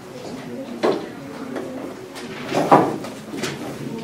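A board eraser rubs across a board.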